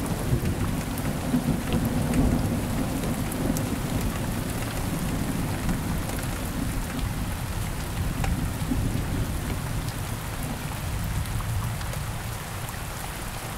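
Thunder rumbles deeply and slowly fades.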